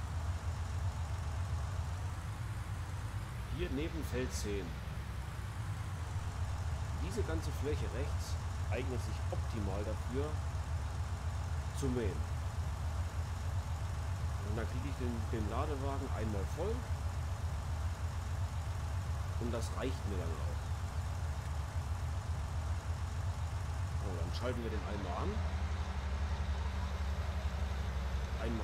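A tractor engine hums steadily at a low pitch.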